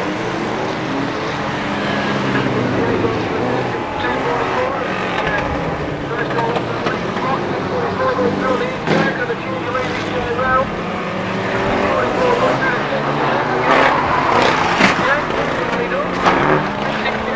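Racing car engines roar and rev.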